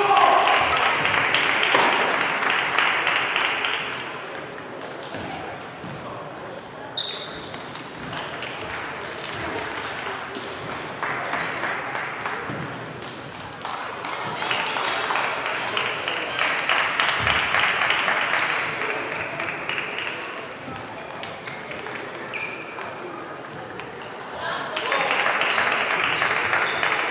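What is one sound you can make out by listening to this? Table tennis balls click on tables and bats in a large echoing hall.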